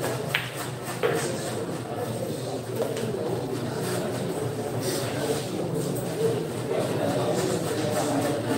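A crowd of young men murmurs and chatters nearby.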